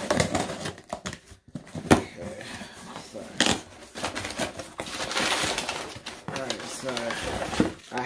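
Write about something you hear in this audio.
A pen scrapes and tears through cardboard tape.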